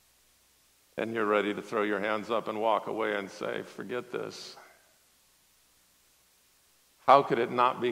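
A man speaks with animation through a microphone, with long pauses.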